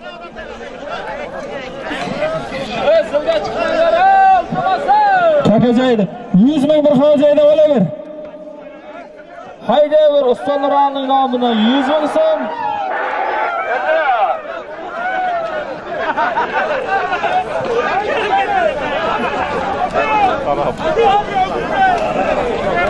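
A large crowd of men shouts and calls out outdoors.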